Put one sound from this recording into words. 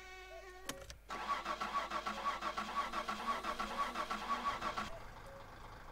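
A car engine starts and idles with a rapid rattle.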